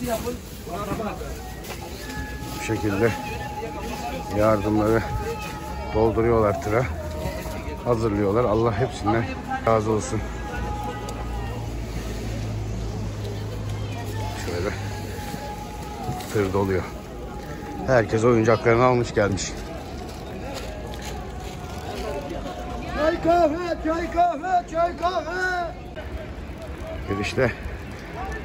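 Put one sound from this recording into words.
Men talk with animation close by, outdoors.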